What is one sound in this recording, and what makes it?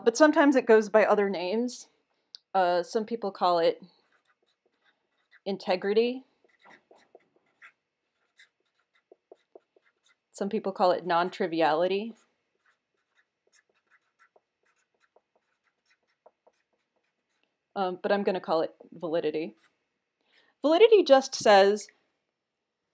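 A young woman speaks calmly into a nearby microphone, in short bursts with pauses.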